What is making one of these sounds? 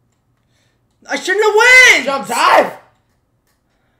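A young man shouts excitedly into a microphone.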